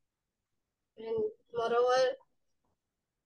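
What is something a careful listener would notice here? A young girl speaks briefly over an online call.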